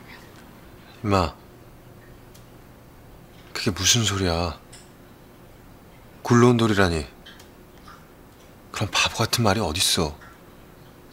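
A young man speaks softly and hesitantly, close by.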